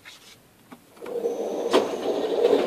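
A target carrier motor whirs.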